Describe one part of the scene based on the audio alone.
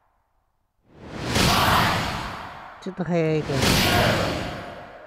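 A crowd cheers and roars in a large hall.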